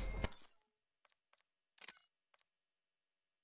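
Soft menu clicks tick a few times.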